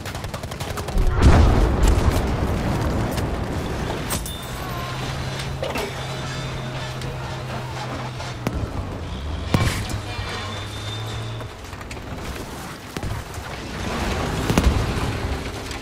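Explosions boom and blast nearby.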